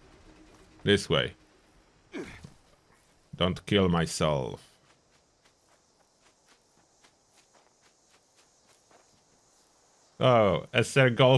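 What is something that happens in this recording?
Footsteps crunch softly through dry grass and leaves.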